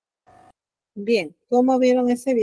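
A young woman speaks calmly into a headset microphone over an online call.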